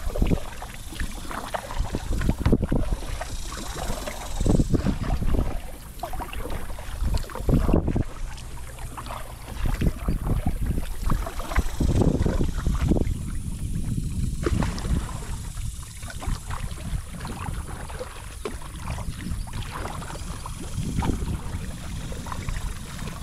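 A paddle splashes and dips into the water in a steady rhythm.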